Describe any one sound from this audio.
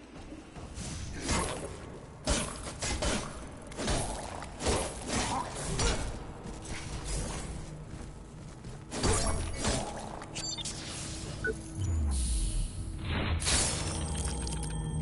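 Heavy weapon blows clash and crunch in a fight.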